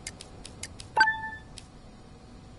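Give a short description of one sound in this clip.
An electronic chime dings once.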